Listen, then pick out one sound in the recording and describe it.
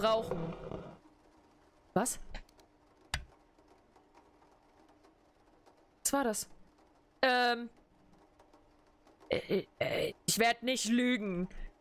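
A young woman talks close to a microphone in short, lively bursts.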